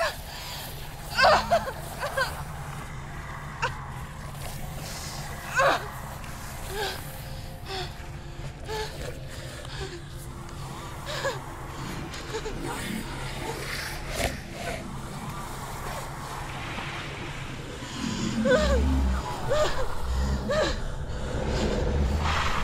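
A small creature snarls and growls close by.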